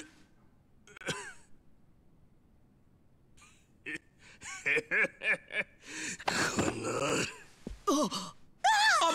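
A man groans and snarls in pain.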